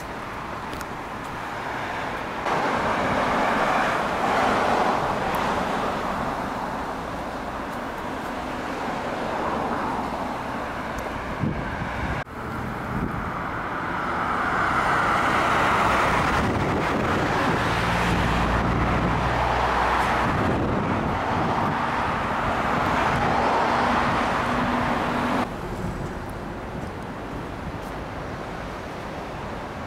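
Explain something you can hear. Cars pass by steadily on a nearby road.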